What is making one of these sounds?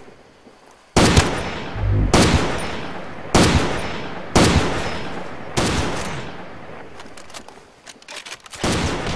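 A rifle fires loud shots that echo away.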